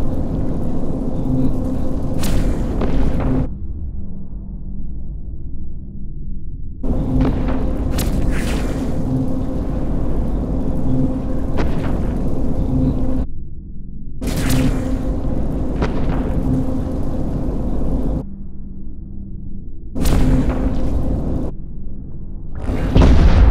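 Laser weapons fire in repeated pulsing bursts.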